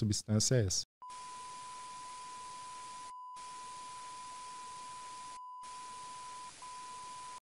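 Television static hisses steadily.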